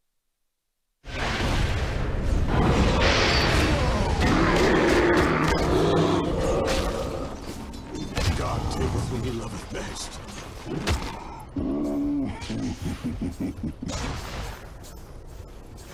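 Video game battle effects crash and crackle loudly.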